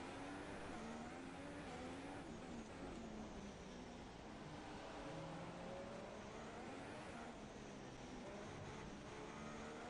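A racing car engine screams at high revs, rising and falling as gears shift.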